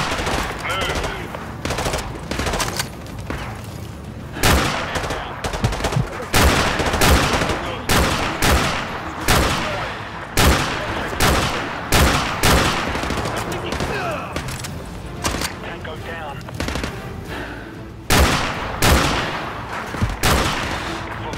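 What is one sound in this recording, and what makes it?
A rifle fires heavy shots one after another, each ringing out.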